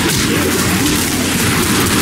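A pistol fires in sharp shots.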